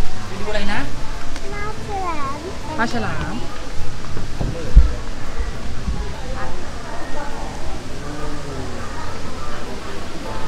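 Children and adults chatter and call out nearby in a large echoing room.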